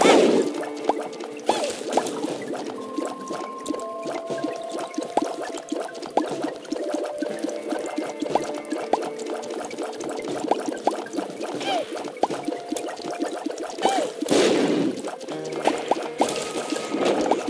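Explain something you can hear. Tear shots pop and splash in quick succession.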